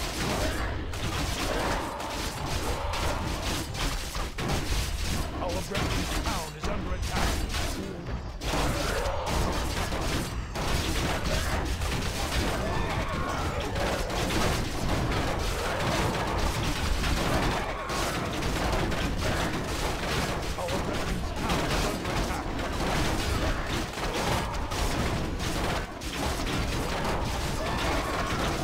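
Weapons clash and clang rapidly in a noisy battle.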